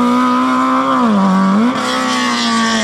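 A race car engine drops in pitch for a gear change, then climbs again.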